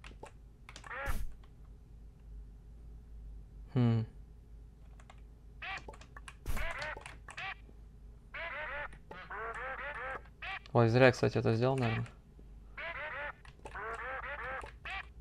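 Short rising electronic bleeps play again and again.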